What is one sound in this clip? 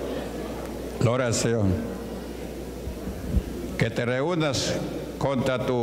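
A man preaches with animation through a microphone, heard over loudspeakers in an echoing hall.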